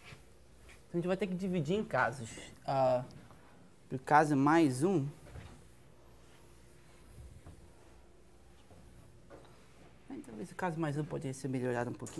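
A man speaks calmly, lecturing.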